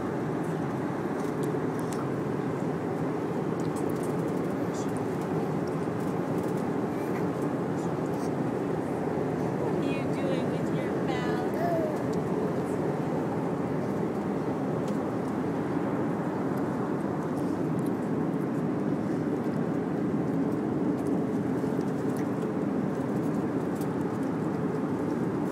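An aircraft engine drones steadily inside a cabin.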